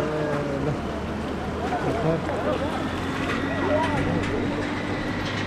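A river flows and rushes over rocks nearby.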